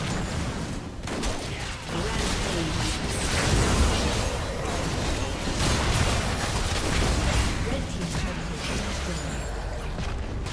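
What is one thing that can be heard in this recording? Video game spell blasts and combat effects crackle and boom in quick succession.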